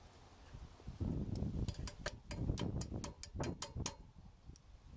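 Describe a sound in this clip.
Metal pliers scrape and click against metal parts.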